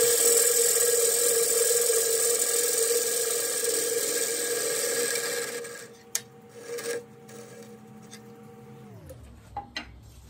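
A lathe motor hums and then winds down.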